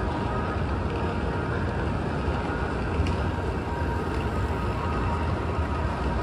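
Footsteps patter on pavement nearby.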